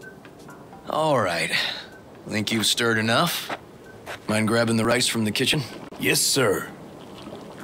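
A man speaks in a deep voice, close by.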